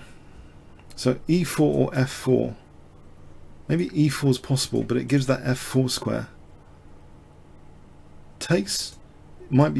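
A man explains calmly, close to a microphone.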